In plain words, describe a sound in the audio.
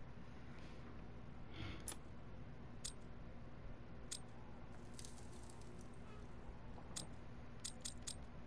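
Small metal parts of a music box click.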